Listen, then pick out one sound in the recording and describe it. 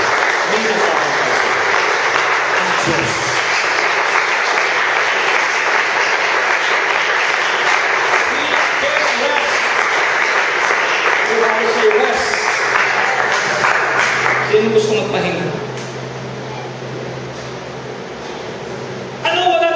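A middle-aged man preaches with animation into a microphone, heard through loudspeakers in an echoing hall.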